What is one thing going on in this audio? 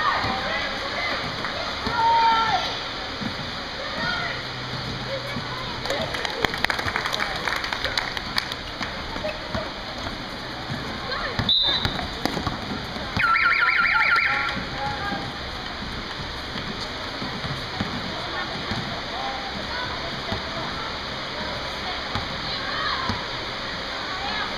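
Children shout and call out across a large echoing gym.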